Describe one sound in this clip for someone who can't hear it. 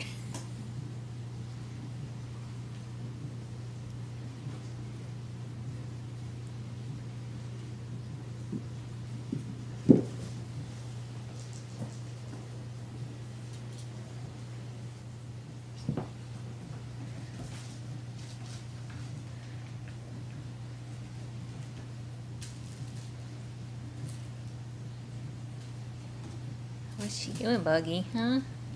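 Kittens scamper and thump across a wooden floor.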